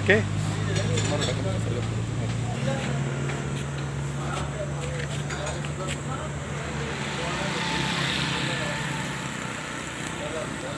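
A gas burner roars steadily.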